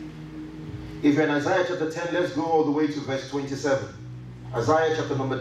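A man reads aloud steadily over a loudspeaker in an echoing room.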